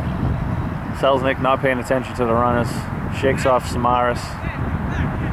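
A young man calls out loudly across the field.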